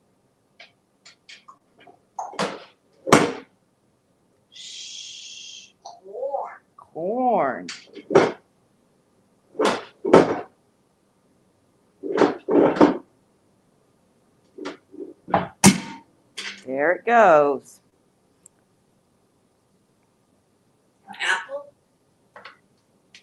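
A parrot knocks and rattles plastic toys in a bucket.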